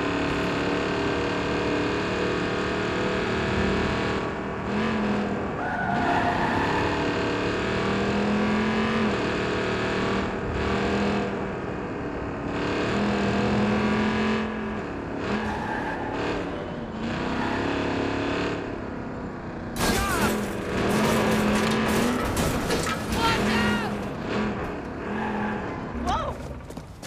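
A truck engine hums and revs steadily as it drives.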